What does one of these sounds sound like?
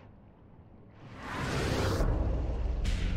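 A bright magical whoosh swells up during a teleport.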